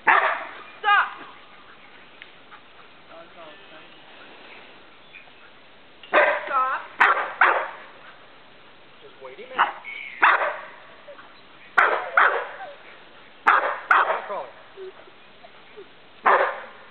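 A dog barks loudly in short bursts.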